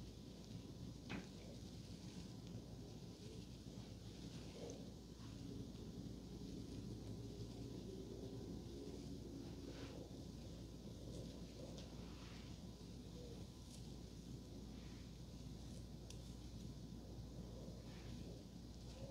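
A comb scrapes softly through hair, close up.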